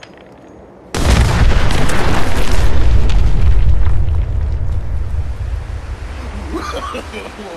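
A large explosion booms and rumbles, then slowly fades.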